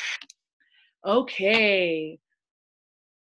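A young woman speaks with animation into a microphone, close by.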